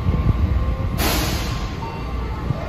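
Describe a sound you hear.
A loud hiss of air bursts from a train's brakes.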